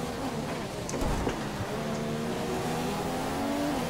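Gravel and dirt rattle and thud under a racing car's tyres.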